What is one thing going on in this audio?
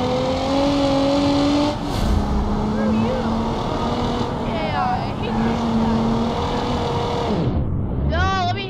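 A car engine hums steadily and revs as the car drives.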